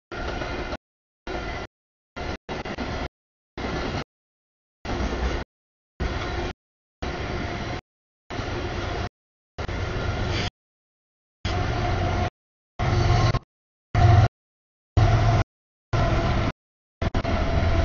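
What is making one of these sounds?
A freight train rumbles past.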